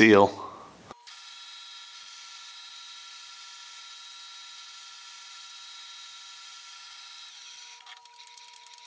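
A lathe motor hums steadily while a drill bit bores into metal.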